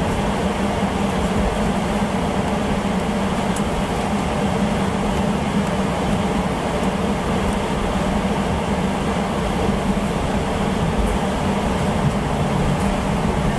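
Tyres rumble on the runway surface.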